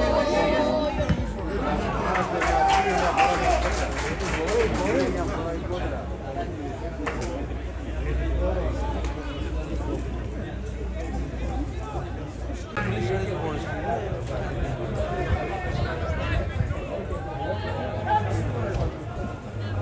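Young men shout and call out to each other across an open football pitch, heard from a distance outdoors.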